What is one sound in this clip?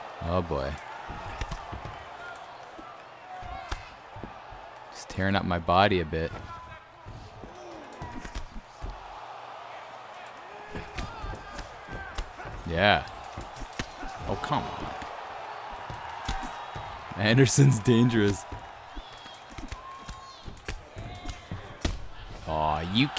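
A crowd murmurs and cheers in the background.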